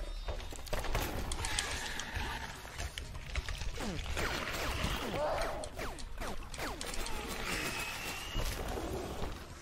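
Sword slashes and metallic impacts clash in quick bursts.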